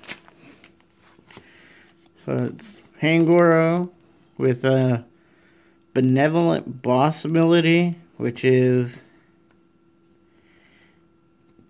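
A trading card rustles softly between fingers.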